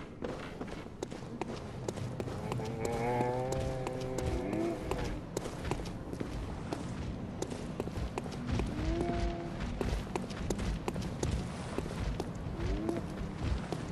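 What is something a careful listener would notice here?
Footsteps tread on hard stone.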